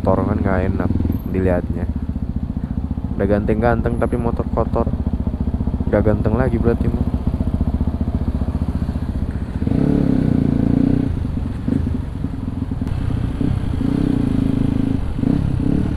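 A motorcycle engine idles with a steady rapid putter.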